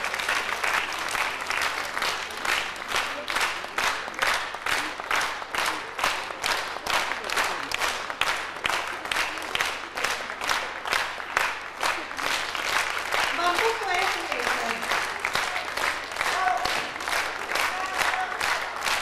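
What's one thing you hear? A crowd claps in a fast, steady rhythm in a large hall.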